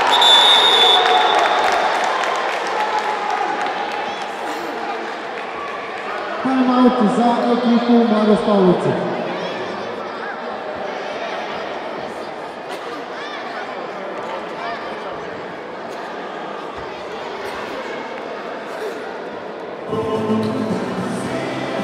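Children shout and cheer in a large echoing hall.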